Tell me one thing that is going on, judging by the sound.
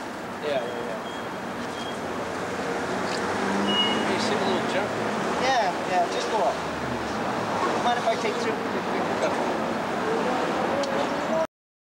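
An older man speaks quietly in reply.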